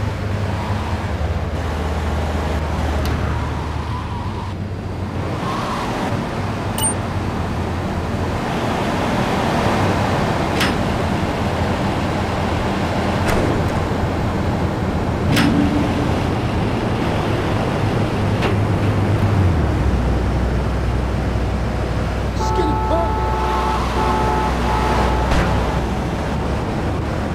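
A car engine hums steadily as a car drives along.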